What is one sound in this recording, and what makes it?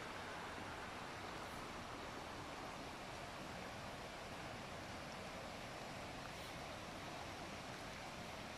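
A shallow stream rushes and burbles steadily over stones.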